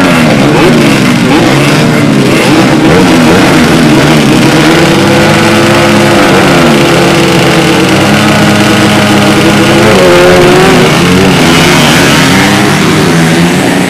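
Dirt bike engines rev loudly up close.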